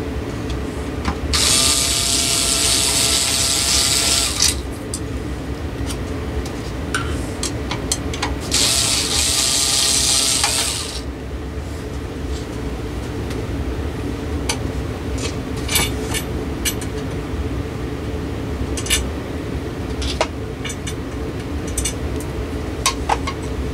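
A ceiling fan motor hums steadily.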